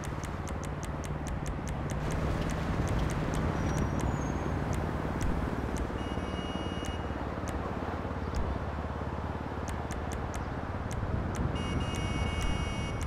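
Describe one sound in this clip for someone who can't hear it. Soft menu clicks tick quickly and repeatedly.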